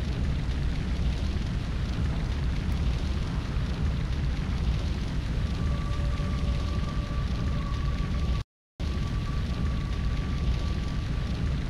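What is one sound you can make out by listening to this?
Ship engines rumble low and steadily over the sea.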